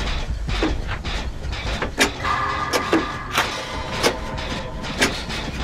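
A generator clanks and rattles metallically as it is repaired.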